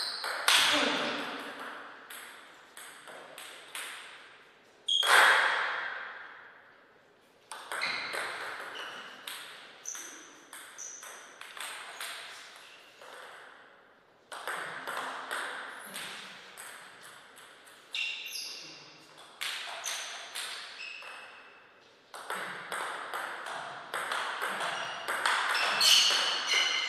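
A ping-pong ball clicks back and forth on a table.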